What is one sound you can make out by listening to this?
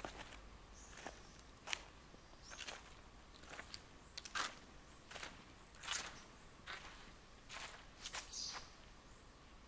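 Footsteps crunch on sandy, gravelly ground.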